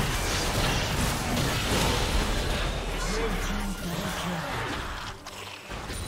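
Magic blasts and clashing combat effects crackle and burst loudly.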